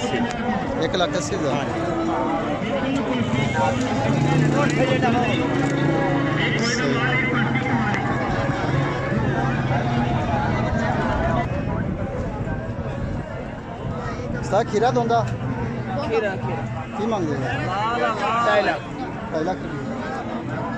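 A crowd of men chatters outdoors in the background.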